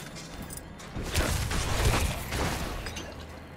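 Fiery blasts and impacts burst in quick succession.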